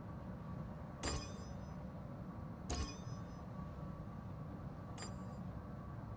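Short electronic clicks sound from a game menu.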